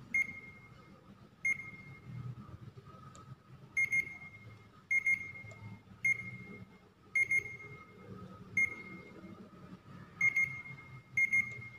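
Small plastic buttons click under a finger.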